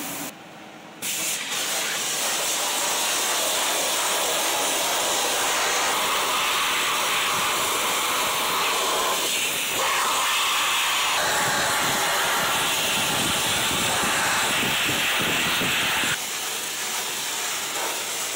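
A sandblaster hisses steadily with a loud rushing blast.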